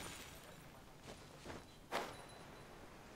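Short whooshes swish past.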